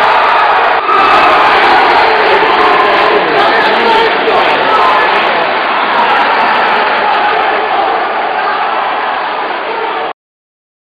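A large crowd cheers and chatters loudly in an echoing hall.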